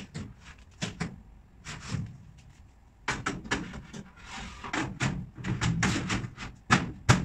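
Particleboard cabinet panels knock and clatter as they are handled.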